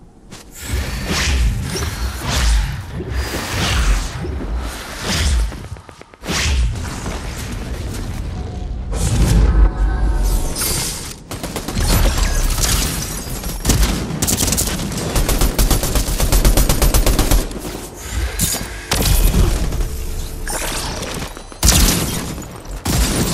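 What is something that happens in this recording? Footsteps run over sand and gravel.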